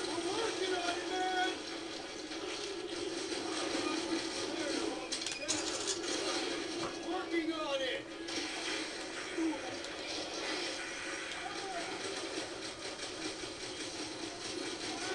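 Game music and battle sounds play through a television.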